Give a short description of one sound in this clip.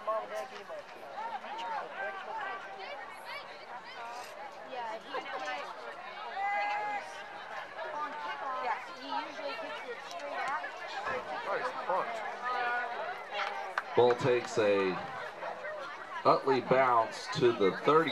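A crowd of young girls chatters and calls out close by.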